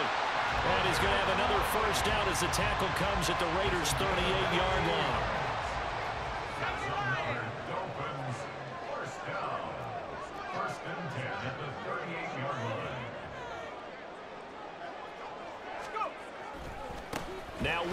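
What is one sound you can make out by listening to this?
A large stadium crowd cheers and roars.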